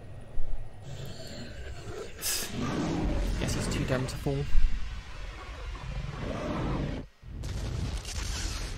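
A deep fiery rumble roars.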